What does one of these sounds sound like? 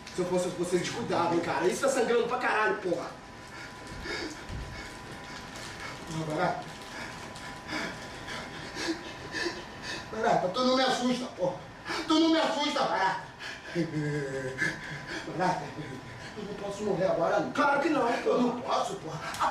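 A man speaks loudly, with animation.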